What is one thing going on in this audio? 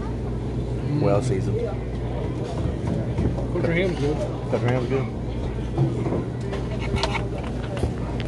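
A man talks close up, in a casual tone.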